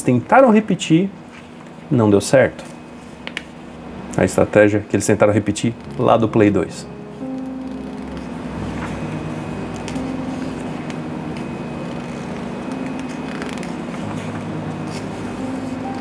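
Paper pages of a magazine rustle as they turn.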